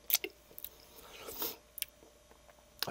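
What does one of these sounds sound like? Tortilla chips rustle and crackle as fingers pick through them.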